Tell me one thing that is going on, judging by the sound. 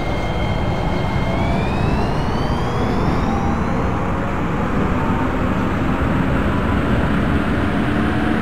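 A train rumbles and clatters along rails, steadily picking up speed.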